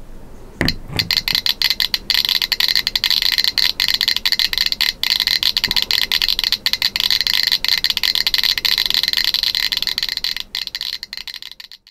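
A radiation counter clicks rapidly and steadily.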